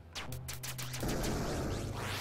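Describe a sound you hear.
A bright burst of magic explodes.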